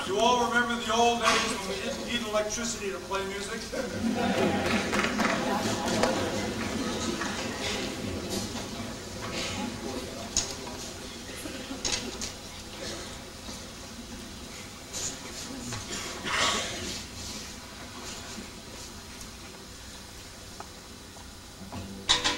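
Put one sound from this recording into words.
A large choir of young voices sings in a big echoing hall.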